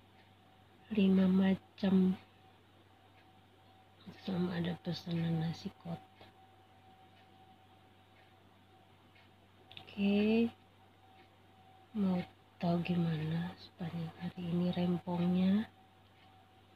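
A woman speaks calmly and softly close by.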